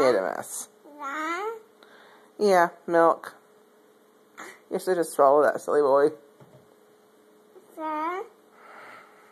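A toddler boy babbles and squeals up close.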